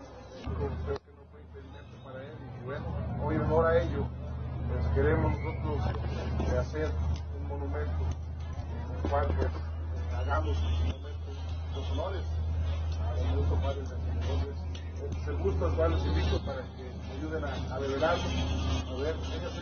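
A man speaks out loud, close by.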